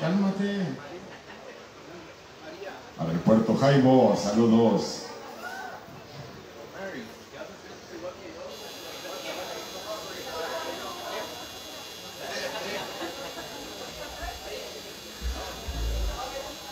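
A band plays music.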